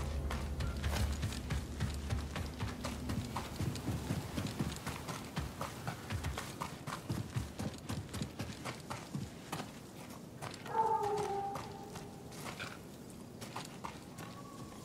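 Footsteps run quickly over dirt and rock.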